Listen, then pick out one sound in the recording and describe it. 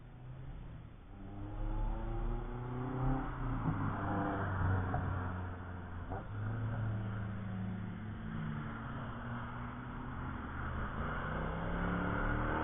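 A car engine revs loudly as a car approaches down the track.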